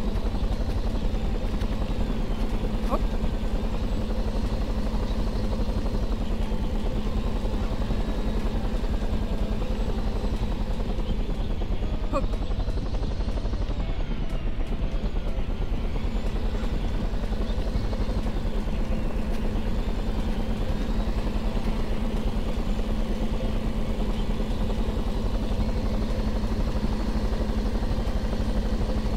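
A small helicopter's rotor whirs steadily.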